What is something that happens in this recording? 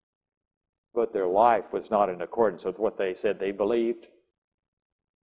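An elderly man speaks with animation into a clip-on microphone.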